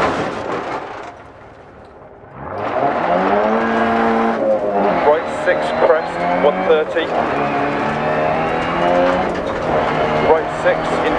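Tyres crunch and rumble over gravel.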